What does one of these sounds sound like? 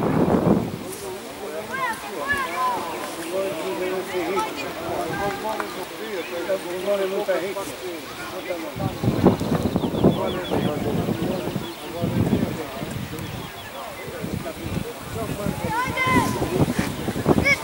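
Players shout to each other from across an open field.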